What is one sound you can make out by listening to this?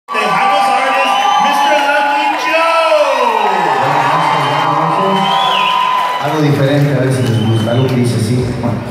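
A live band plays music loudly in a large hall.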